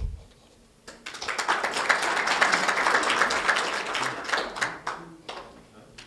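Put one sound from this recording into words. An audience claps and applauds in a hall.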